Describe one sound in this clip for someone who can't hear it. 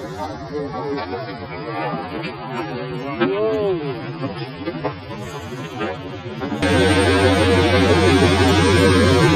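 A group of men call out together loudly outdoors.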